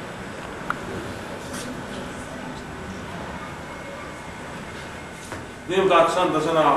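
Men and women chatter quietly in the background.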